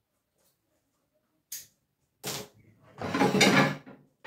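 A metal pot lid clinks.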